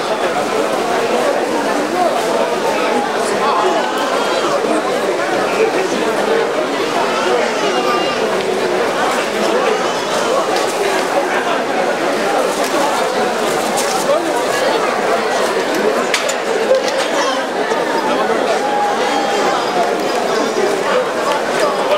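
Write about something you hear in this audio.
A crowd of men and women murmurs and chatters nearby, outdoors.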